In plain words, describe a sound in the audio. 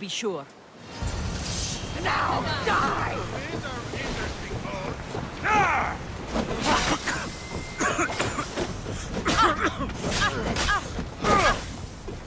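Blades clash and strike repeatedly in a fight.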